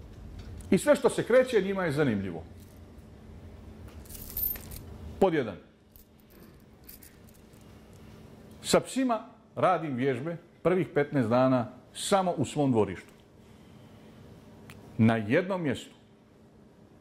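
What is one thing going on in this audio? A middle-aged man speaks calmly into a microphone, pausing between phrases.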